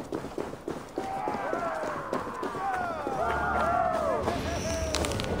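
Several men shout and cheer together.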